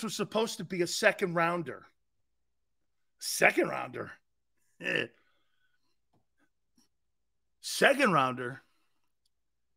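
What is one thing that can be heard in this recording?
A middle-aged man speaks with animation through a microphone, in short bursts with pauses.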